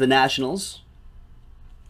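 A man speaks briefly, close to a microphone.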